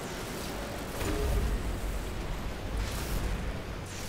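Heavy melee blows land with dull thuds.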